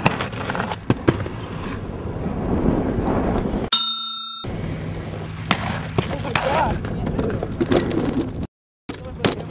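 Skateboard wheels roll and rumble on pavement.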